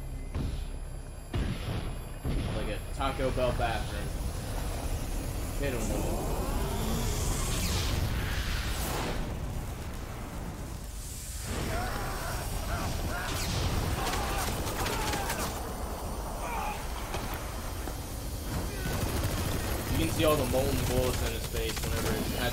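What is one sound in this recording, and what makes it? Flames roar steadily.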